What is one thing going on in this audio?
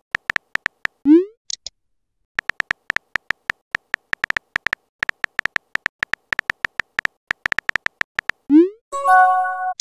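A short whoosh sounds as a message is sent.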